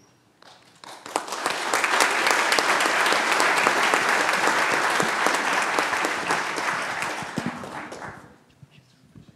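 An audience applauds steadily, then the clapping fades.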